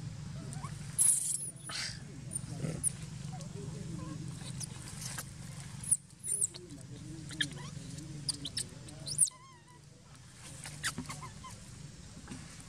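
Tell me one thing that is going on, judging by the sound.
A young monkey squeaks and squeals in short high-pitched bursts.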